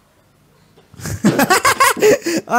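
A young man laughs loudly into a close microphone.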